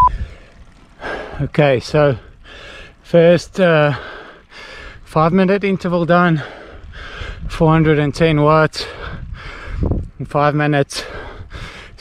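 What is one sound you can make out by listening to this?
A young man talks breathlessly into a close microphone.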